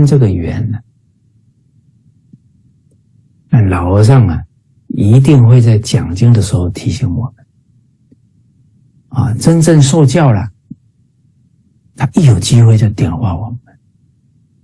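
A middle-aged man speaks with animation in short bursts over an online call.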